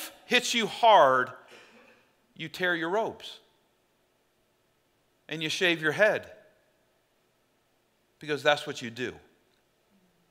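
A middle-aged man speaks deliberately into a microphone, with long pauses.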